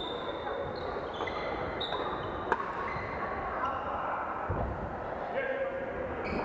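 Shuttlecocks are struck by rackets in a large echoing hall.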